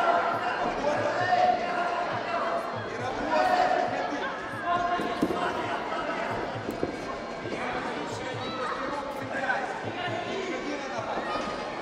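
A crowd of spectators chatters and shouts nearby.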